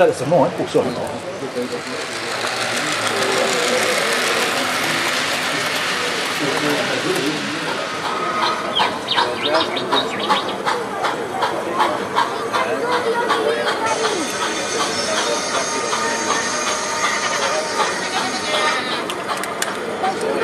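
A small model train rattles and clicks along its tracks close by.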